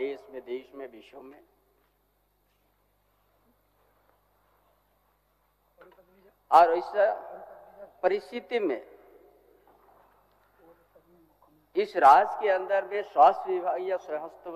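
An elderly man speaks formally into a microphone, pausing between phrases.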